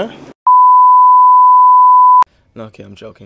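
A steady, high test beep sounds and stops abruptly.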